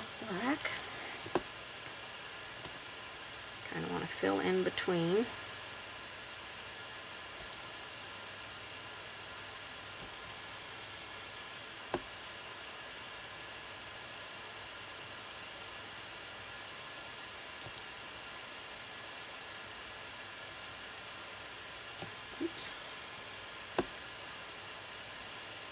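A brush strokes softly across a painted surface.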